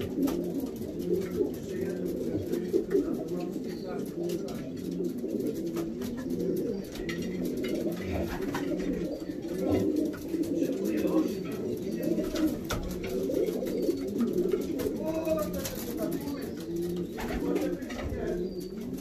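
Many pigeons coo softly and steadily close by.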